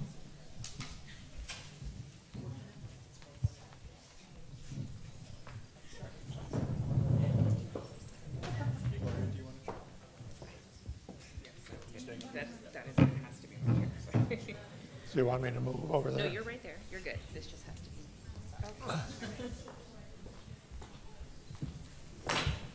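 Footsteps thud on a wooden stage.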